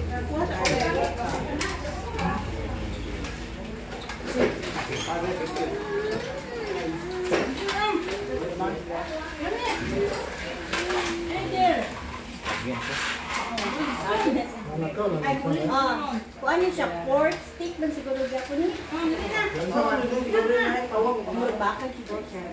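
A group of men and women chatter nearby in a room.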